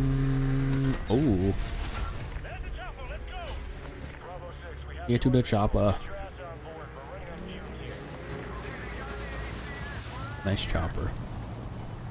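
A snowmobile engine hums steadily.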